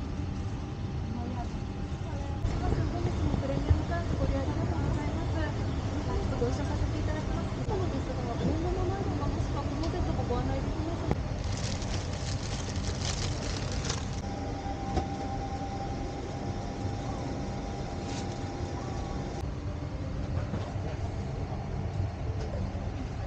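A steady low engine roar drones throughout.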